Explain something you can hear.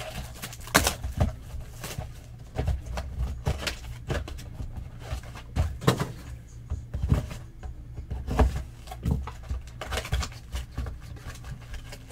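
Cardboard boxes rustle and knock as hands handle them.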